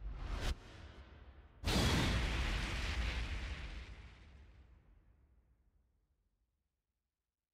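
A fiery burst whooshes and booms, then slowly fades away.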